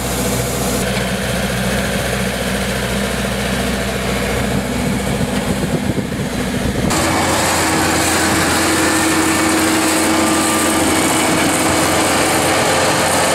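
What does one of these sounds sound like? An engine hums steadily.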